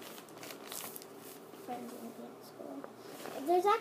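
A zipper rasps open on a bag.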